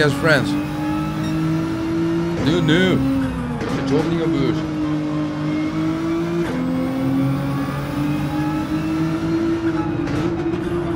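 A racing car engine drones steadily, dropping in pitch as it changes gear.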